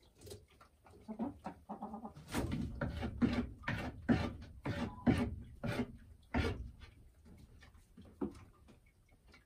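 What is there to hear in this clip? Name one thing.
A hen clucks and croons close by.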